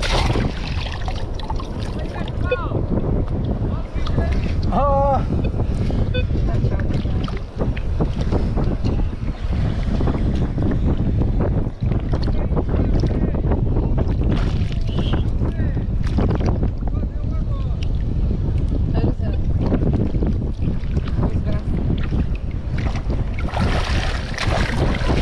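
Water splashes and sloshes as a scoop is shaken in shallow sea water.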